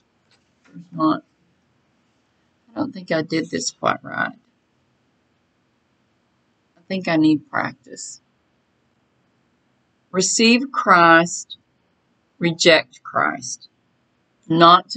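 A middle-aged woman speaks calmly in short phrases, close to a microphone.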